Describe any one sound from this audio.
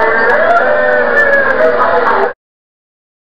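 A group of young people sings together into microphones on a stage.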